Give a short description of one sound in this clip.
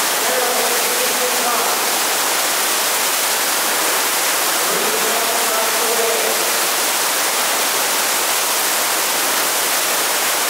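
Water rushes hard over a surf machine's wave in a large hall.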